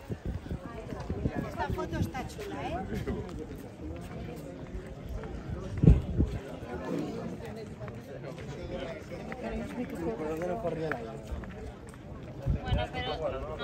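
Men and women chatter outdoors nearby.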